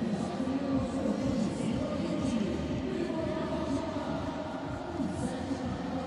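A volleyball is struck hard with a thump.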